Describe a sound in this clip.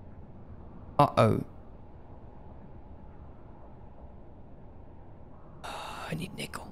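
A young man talks briefly into a close microphone.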